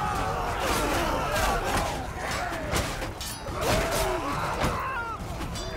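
Swords and shields clash in a battle.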